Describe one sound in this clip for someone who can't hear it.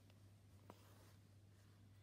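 Thread is pulled through fabric with a faint swish.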